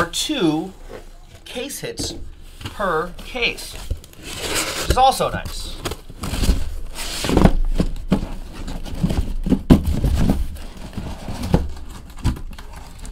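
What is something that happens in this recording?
Cardboard rustles and scrapes as a box is handled and opened.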